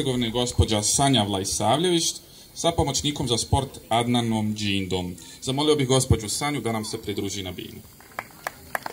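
A young man speaks through a microphone and loudspeakers outdoors.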